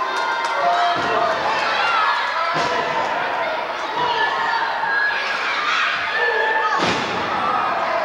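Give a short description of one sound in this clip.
Bodies thud heavily onto a wrestling ring mat.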